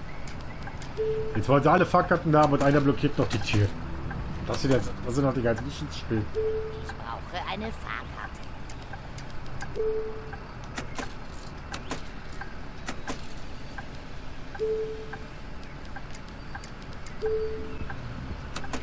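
A ticket machine gives short electronic beeps.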